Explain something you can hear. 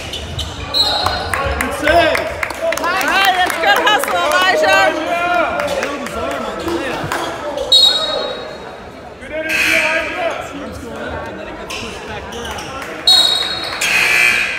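Basketball players' sneakers squeak on a hardwood court.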